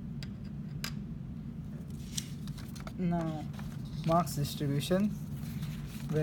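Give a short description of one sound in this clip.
Paper rustles as a page is turned.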